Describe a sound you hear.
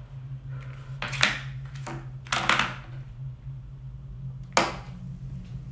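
A hard object knocks and clatters on a table a few times.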